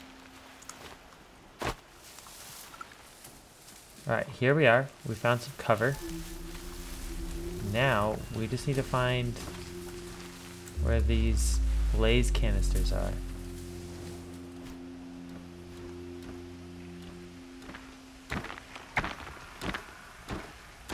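Footsteps rustle softly through tall grass.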